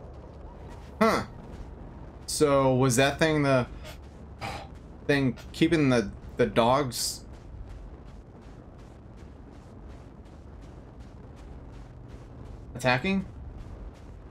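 A man talks with animation into a microphone, up close.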